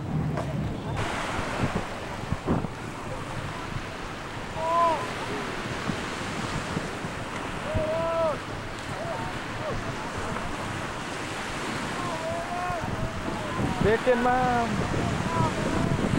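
Waves wash onto a beach in a steady rush.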